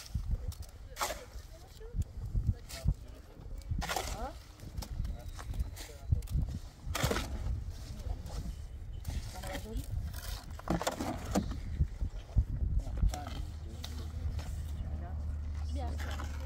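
A trowel scrapes wet mortar.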